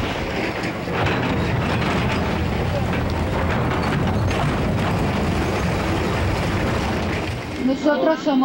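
Concrete walls crash and crumble as a building is torn down.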